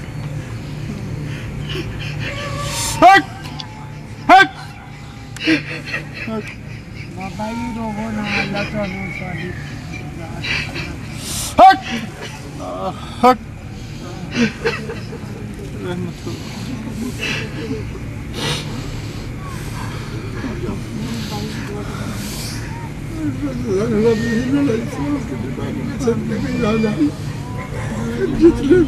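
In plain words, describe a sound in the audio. An elderly man speaks slowly into a microphone, heard through a loudspeaker.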